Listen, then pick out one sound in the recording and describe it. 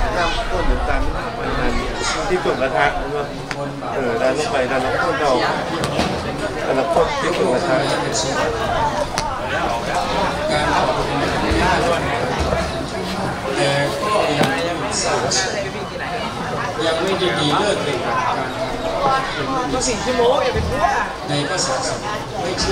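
Wooden paddles scrape and slosh through thick mixture in metal pans.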